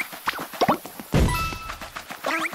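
A springy tongue lashes out with a short slurp.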